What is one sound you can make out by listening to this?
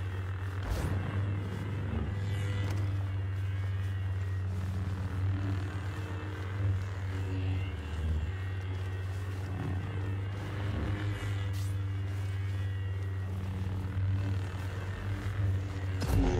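Lightsabers clash and swing with sharp buzzing strokes.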